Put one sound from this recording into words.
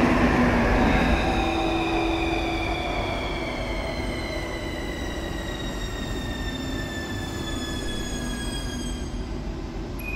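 A train's electric motor whines and slowly falls in pitch as the train slows.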